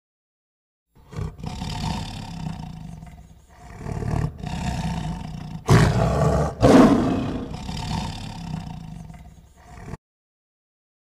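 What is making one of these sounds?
A tiger growls and roars.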